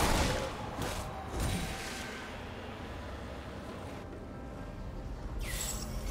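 Game spell effects whoosh and crackle in short bursts.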